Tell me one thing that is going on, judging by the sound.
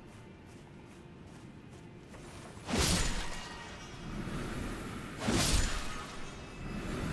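Footsteps run over soft grass.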